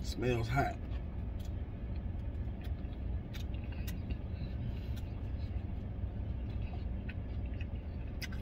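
A man chews food with his mouth full.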